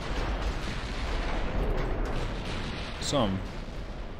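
Large guns fire with deep booms.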